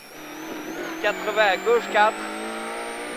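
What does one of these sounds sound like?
A man reads out notes quickly through a helmet intercom.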